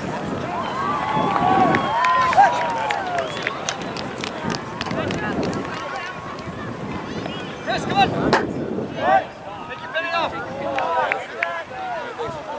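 Young players call out and talk from a distance.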